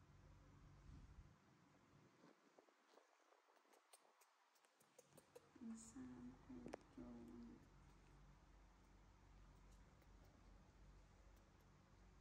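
Fabric rustles as a baby monkey is handled.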